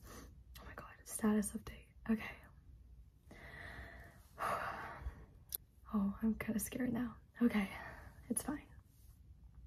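A young woman talks close by, with animation.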